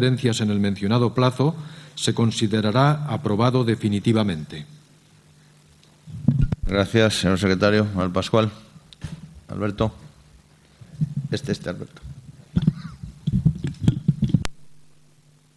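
A middle-aged man reads out calmly through a microphone.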